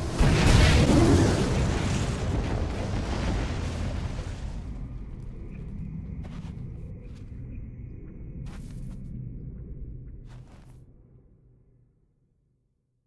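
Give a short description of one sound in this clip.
Thunder crashes loudly and slowly rumbles away.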